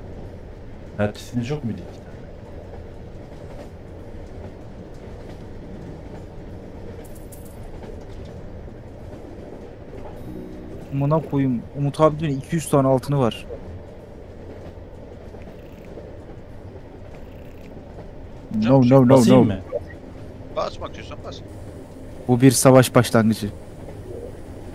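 A man talks casually in short bursts, close to a microphone.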